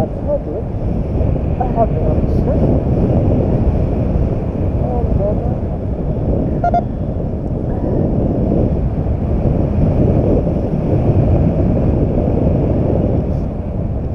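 Wind roars steadily over the microphone high up outdoors.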